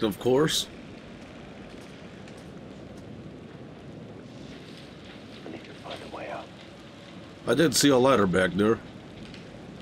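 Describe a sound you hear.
A young man speaks loudly and excitedly into a close microphone.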